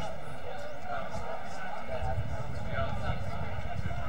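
A man shouts for the ball from across an open field.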